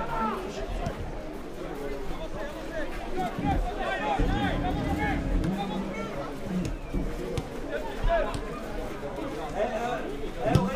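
A crowd of spectators murmurs and calls out in the distance.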